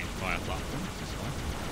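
A man talks briefly through a headset microphone.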